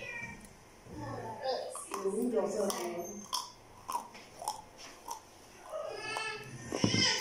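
A woman chews crunchy food close by.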